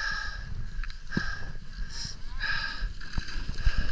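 Skis scrape over snow.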